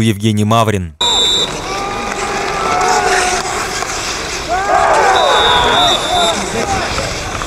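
Men shout and cheer outdoors, some way off.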